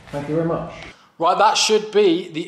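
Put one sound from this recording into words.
A man speaks up close with animation.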